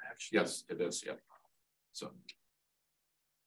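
A man speaks briefly through a meeting call microphone.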